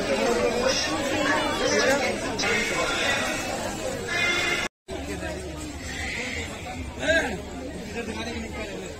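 A crowd of men and women chatters all around in a busy market.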